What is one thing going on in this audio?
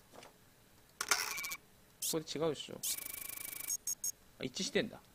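Electronic game tones buzz and chirp in short bursts.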